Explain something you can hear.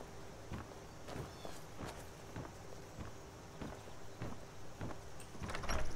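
Footsteps thud slowly on wooden boards.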